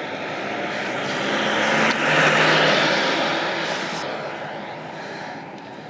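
A car drives past on the road with a rising and fading whoosh.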